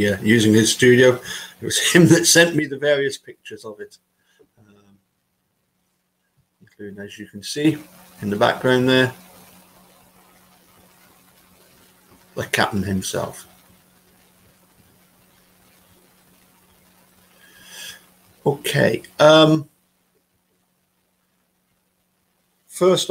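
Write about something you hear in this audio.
A middle-aged man speaks calmly into a microphone, with pauses, as if over an online call.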